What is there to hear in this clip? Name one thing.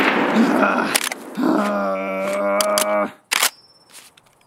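A rifle magazine clicks out and snaps back in.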